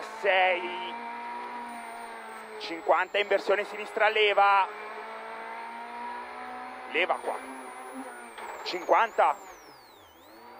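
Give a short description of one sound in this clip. A car engine drones steadily and revs up and down.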